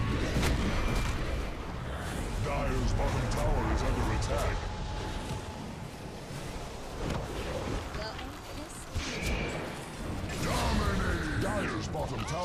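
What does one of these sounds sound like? Spell effects crackle and blast during a fight.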